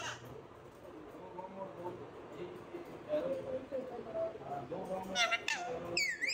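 Parrots chatter softly.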